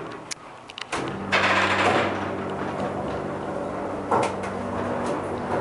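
A lift motor hums steadily as the car moves.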